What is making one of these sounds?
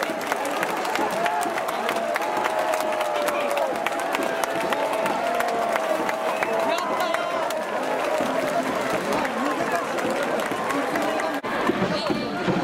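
A large stadium crowd cheers and chants loudly in unison.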